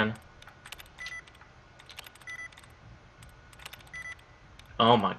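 A computer terminal gives short beeps.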